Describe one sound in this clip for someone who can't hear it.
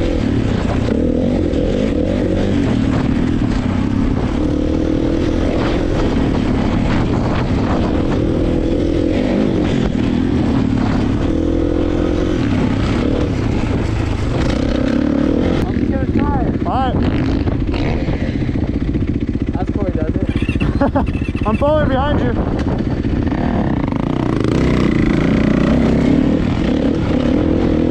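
A dirt bike engine roars close by, revving up and down as it rides over rough ground.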